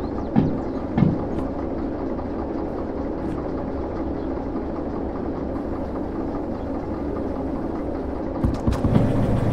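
A diesel locomotive engine rumbles steadily at idle.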